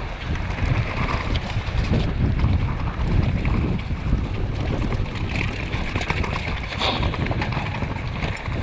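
Wind buffets loudly against the microphone.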